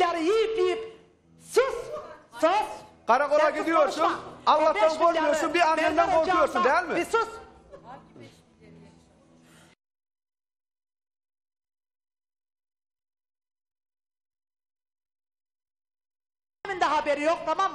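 A young woman speaks emotionally into a microphone, heard over a remote link.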